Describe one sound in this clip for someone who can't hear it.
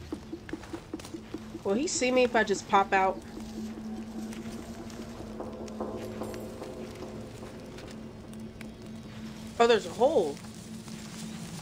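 Footsteps rustle softly through dry grass.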